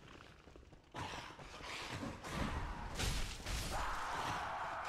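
A blade strikes a creature with heavy thuds.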